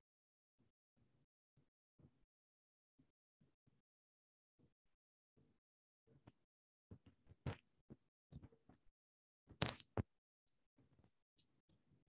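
A woman breathes slowly through her nose, close to a microphone, in short soft bursts.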